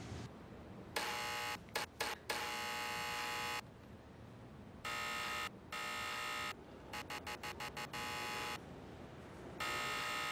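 A door buzzer buzzes in repeated bursts.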